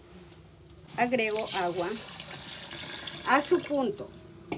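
Water pours into a pot with a splashing rush.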